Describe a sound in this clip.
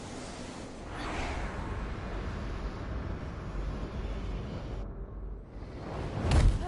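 A deep whooshing rumble swells and grows louder.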